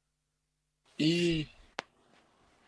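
A man's voice comes in briefly through an online call.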